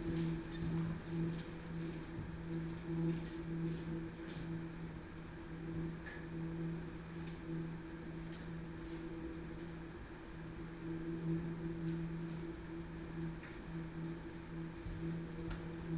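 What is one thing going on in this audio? Chairs knock and scrape on a stage floor.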